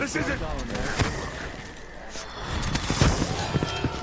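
A magic blast crackles and whooshes.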